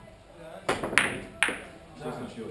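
Billiard balls clack together.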